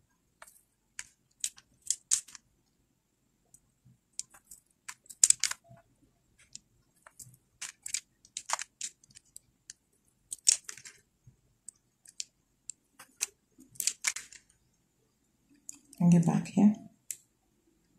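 Plastic beads click and tap together in a hand.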